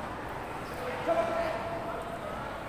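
A young man shouts sharply.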